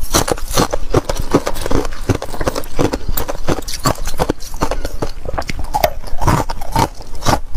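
Ice crunches loudly as a woman bites and chews it close up.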